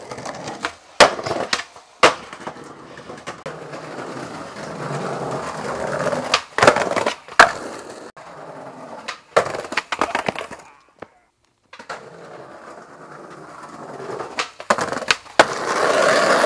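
A skateboard snaps and clacks hard against the ground.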